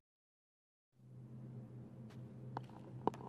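A low magical hum drones softly.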